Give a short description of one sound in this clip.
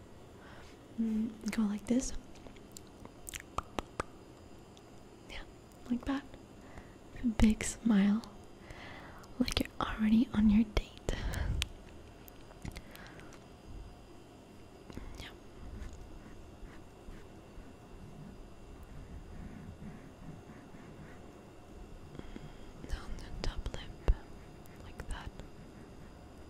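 A young woman makes wet mouth sounds very close to a microphone.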